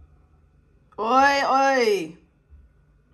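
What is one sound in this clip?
A young woman exclaims with delight.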